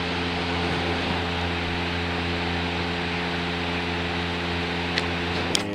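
An electrical device hums steadily.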